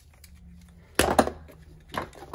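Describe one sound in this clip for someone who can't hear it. A metal part clanks loudly once.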